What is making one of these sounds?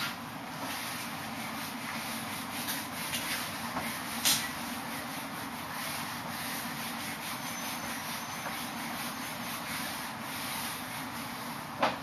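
A cloth eraser rubs across a whiteboard.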